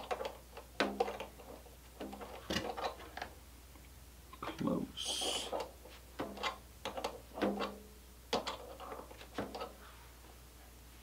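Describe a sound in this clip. Small parts click and tap.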